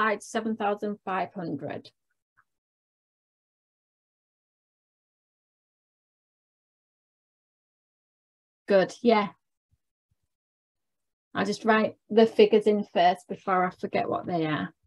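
A young woman explains calmly through a microphone, with pauses.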